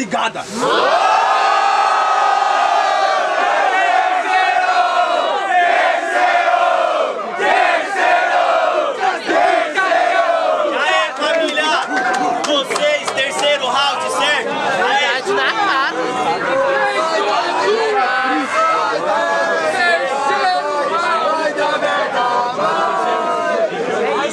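A young man raps loudly with animation.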